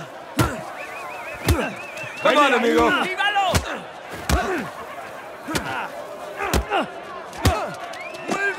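Fists thud heavily against bodies in a brawl.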